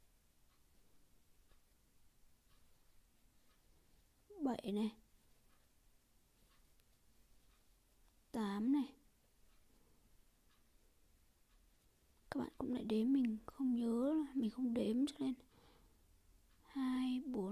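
A crochet hook pulls yarn through stitches with soft rustling.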